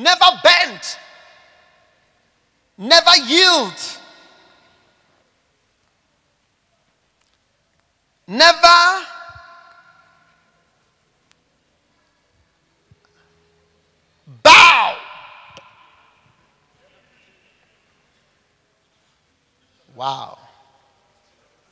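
A man speaks with animation into a microphone, in short bursts with long pauses, in an echoing hall.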